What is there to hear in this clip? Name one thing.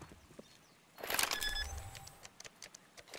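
Electronic keypad beeps sound as buttons are pressed.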